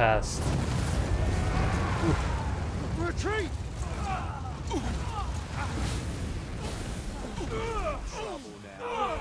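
Fire roars.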